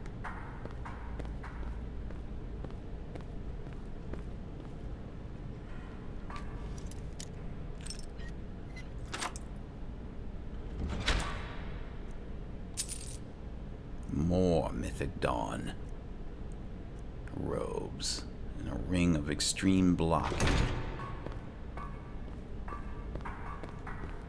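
Footsteps scrape on a stone floor.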